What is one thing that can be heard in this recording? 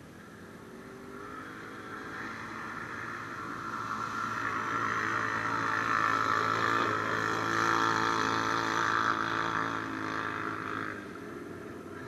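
Another quad bike engine roars nearby as it ploughs through water, then fades.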